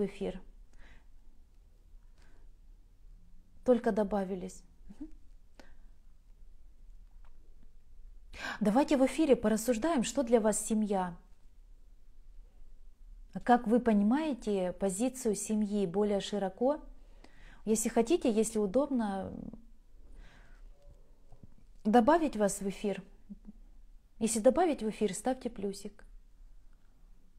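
A young woman speaks calmly close to the microphone, in short phrases with pauses.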